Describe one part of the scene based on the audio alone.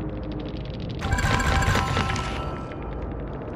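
A menu chime rings out brightly.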